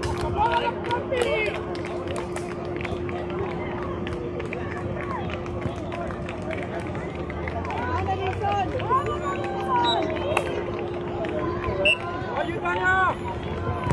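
A football is kicked on grass in the distance.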